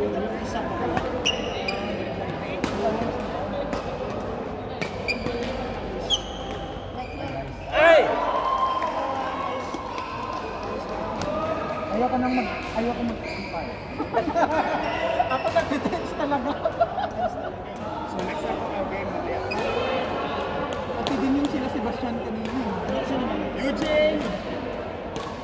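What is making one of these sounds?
Shuttlecocks are struck by rackets with sharp pops in a large echoing hall.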